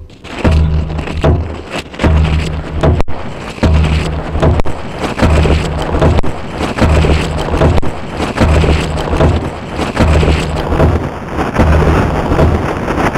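An electronic synthesizer plays a deep, pulsing beat at a steady pace.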